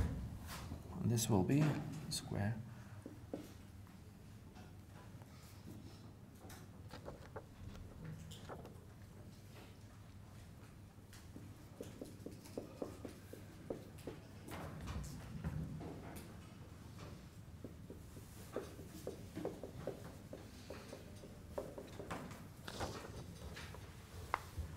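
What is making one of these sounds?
Chalk taps and scrapes on a board in a quiet room.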